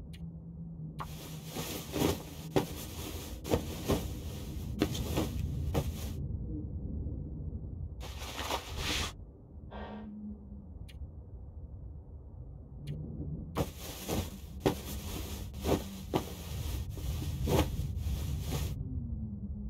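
Cloth rustles and scrapes in bursts as trousers are mended.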